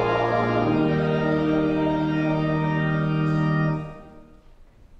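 A choir sings a closing chord in a large, echoing hall.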